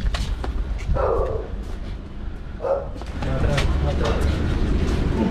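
A man calls out commands at a distance.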